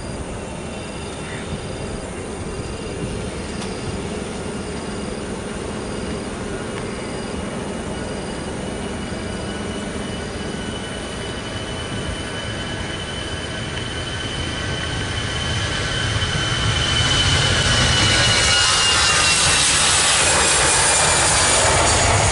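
A jet airliner's engines roar, growing steadily louder as the plane speeds by.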